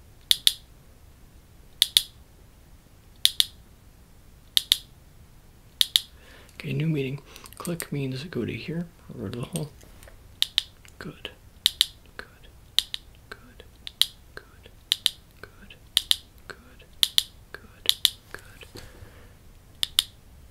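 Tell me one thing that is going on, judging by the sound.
A ratchet clicks in pairs of quick clicks, close up, at a steady pace.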